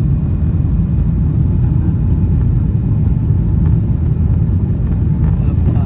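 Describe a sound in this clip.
Jet engines roar with a steady, deep rumble inside an airplane cabin.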